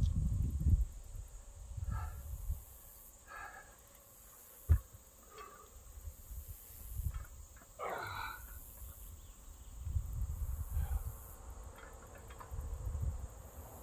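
Wind rumbles and gusts outdoors.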